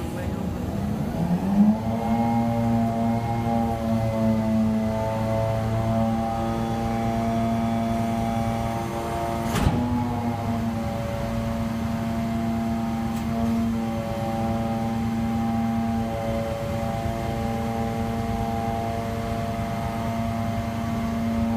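A hydraulic pump whines, rising in pitch and then holding a steady drone.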